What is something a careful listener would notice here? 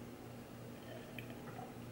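A young woman sips a drink.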